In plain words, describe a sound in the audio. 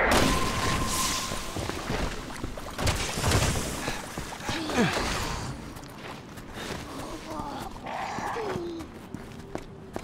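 Footsteps walk on a hard outdoor path.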